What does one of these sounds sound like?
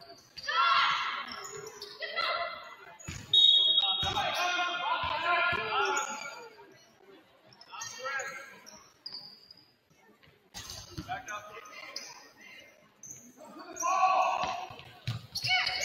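Spectators cheer and call out in a large echoing gym.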